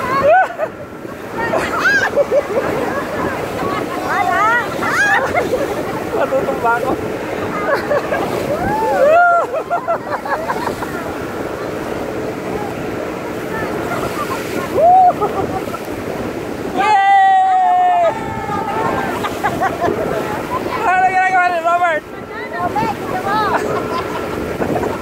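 Wind rushes loudly past outdoors.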